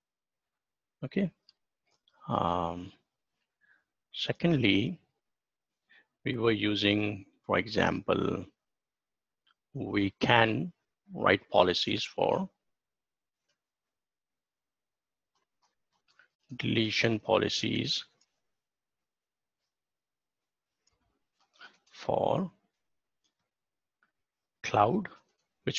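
A middle-aged man speaks calmly into a microphone over an online call, with pauses.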